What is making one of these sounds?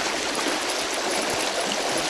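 A small fish splashes and flaps in the water.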